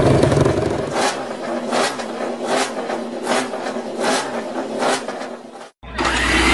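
A racing motorcycle engine revs in short, sharp bursts.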